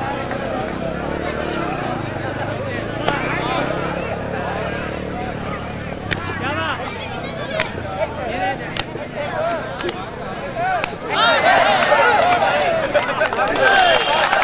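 A large crowd of men chatters outdoors.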